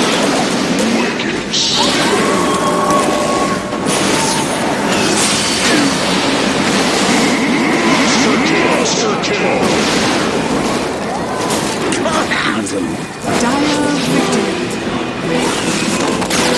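Magic spells crackle and burst in a fast battle.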